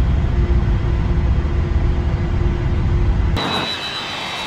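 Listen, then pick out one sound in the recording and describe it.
A jet engine rumbles low and loud from inside a cockpit.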